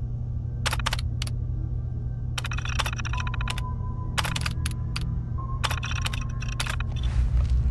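A computer terminal beeps and clicks in short bursts.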